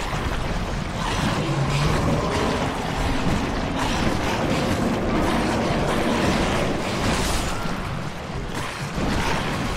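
Blades swing and strike in a close fight.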